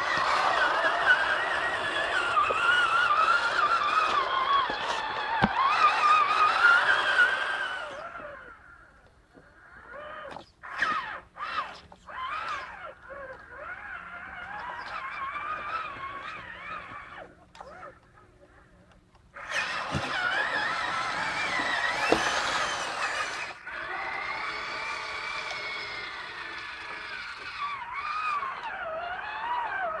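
Water splashes around the wheels of a toy truck.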